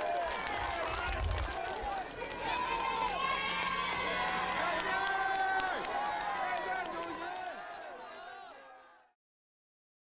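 A large crowd of children and adults cheers and shouts excitedly outdoors.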